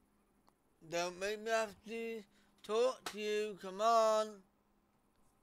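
A young man speaks animatedly into a close microphone.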